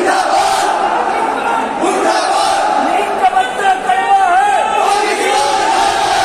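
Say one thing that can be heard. A crowd of young men shouts and cheers loudly.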